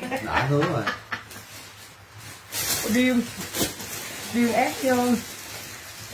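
A middle-aged woman talks and laughs cheerfully close by.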